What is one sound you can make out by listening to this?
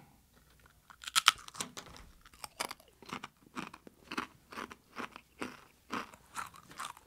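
A man crunches loudly on a crispy snack.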